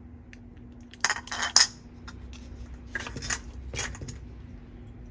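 Small plastic toy pieces click and rattle against a plastic bowl.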